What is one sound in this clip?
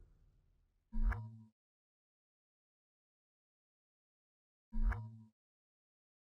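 Two short electronic blips sound.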